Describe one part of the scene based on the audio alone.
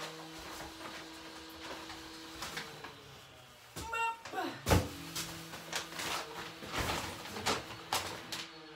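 Plastic shopping bags rustle and crinkle.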